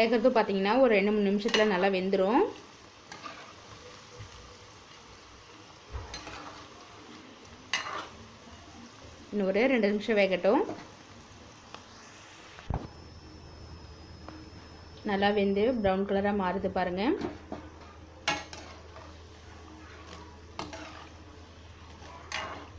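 Oil sizzles and bubbles steadily in a pan.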